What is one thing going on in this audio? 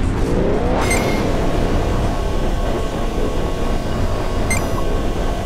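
Laser beams hum and buzz continuously.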